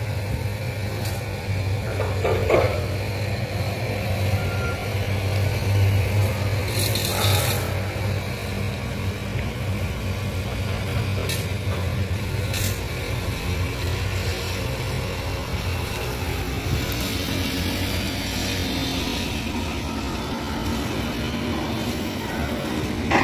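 Excavator engines rumble steadily in the distance.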